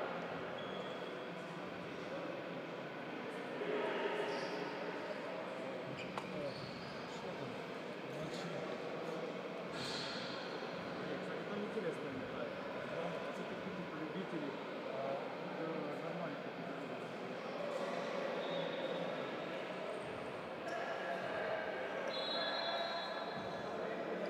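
Men's voices murmur and call out in a large echoing hall.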